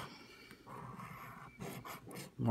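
A fingernail scratches at a stiff card.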